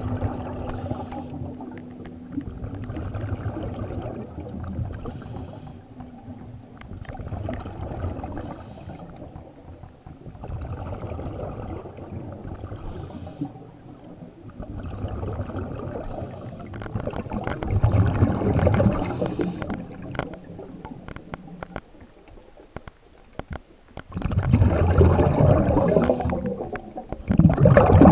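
Water rushes and surges underwater.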